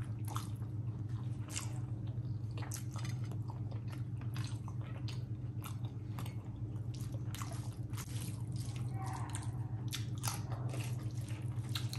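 Fingers squish and mix rice on a metal plate.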